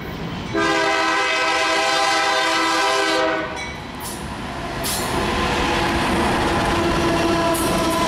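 A diesel locomotive engine rumbles closely as it passes.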